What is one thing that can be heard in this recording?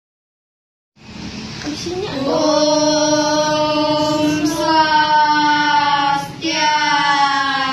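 A group of children sing together in unison, close by.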